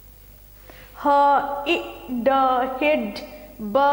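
A middle-aged woman speaks loudly and clearly, as if teaching.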